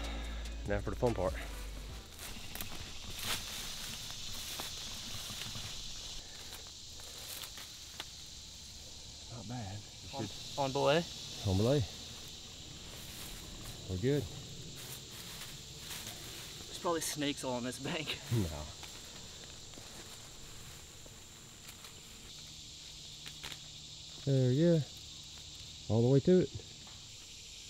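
A man speaks nearby in short calls.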